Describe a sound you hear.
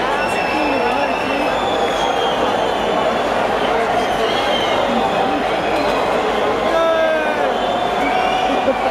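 A large crowd chatters and cheers loudly in a big echoing hall.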